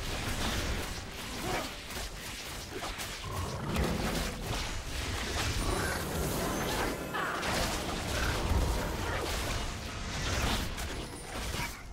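Magic spells and weapon hits crackle and clash in a video game fight.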